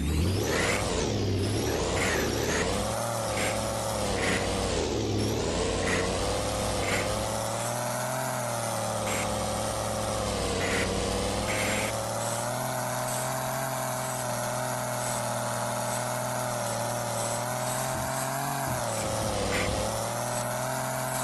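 A truck engine drones and revs, its pitch rising and falling.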